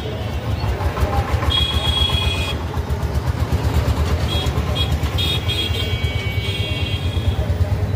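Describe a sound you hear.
Motor rickshaws rumble past nearby.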